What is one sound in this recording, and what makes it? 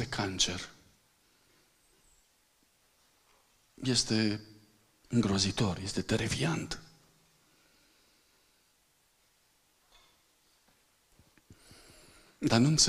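A man speaks into a microphone in bursts, heard through loudspeakers in a large echoing hall.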